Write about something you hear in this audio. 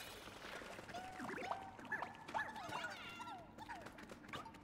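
Small creatures chirp and squeak in high voices.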